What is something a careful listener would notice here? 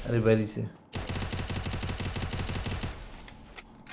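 An automatic gun fires a rapid burst.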